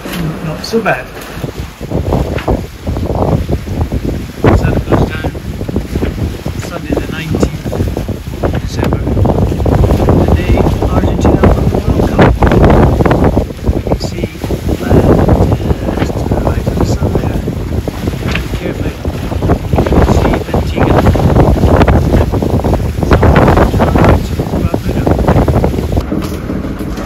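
Waves rush and splash against a moving boat's hull.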